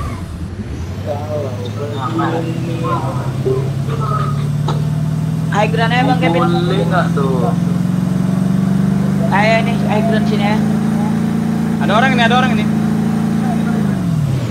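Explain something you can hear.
A vehicle engine hums steadily, slowly rising in pitch as it drives.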